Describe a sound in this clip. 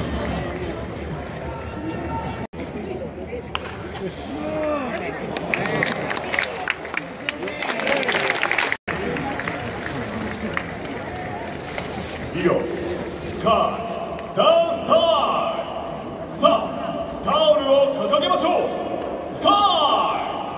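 A large crowd cheers and chants in an echoing stadium.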